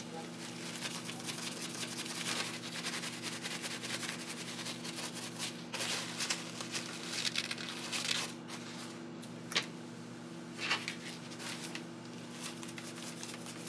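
A paper towel crinkles and rustles close by.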